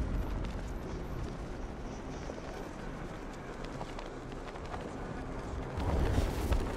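Wind rushes steadily past a gliding cape.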